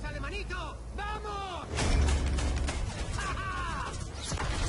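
A young man shouts urgently.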